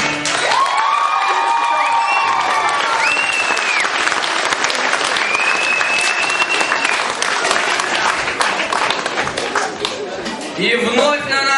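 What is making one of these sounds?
An audience claps and cheers loudly in a large hall.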